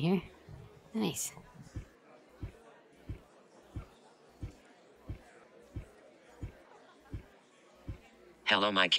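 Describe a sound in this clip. Footsteps thump steadily on a hard floor.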